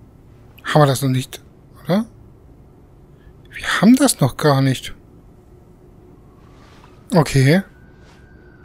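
A young woman groans softly close by.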